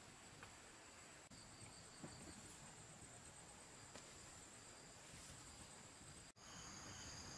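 Footsteps tread on dirt and wooden planks.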